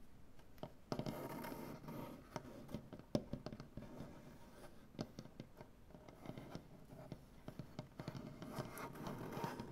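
Fingertips scratch and rub across a wooden surface.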